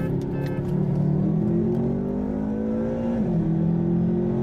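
A car engine drones steadily as it speeds up, its pitch rising and then dropping at a gear change.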